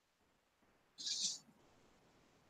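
A marker squeaks briefly on a board.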